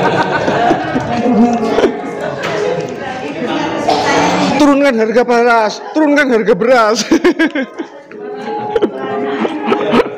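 A woman laughs and chatters cheerfully close by.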